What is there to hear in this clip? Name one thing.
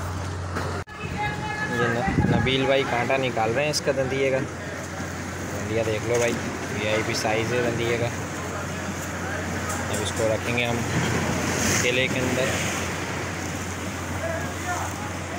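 Men talk casually close by.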